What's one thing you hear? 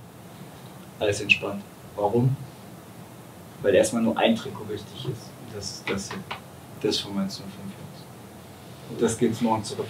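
A man speaks calmly to a group.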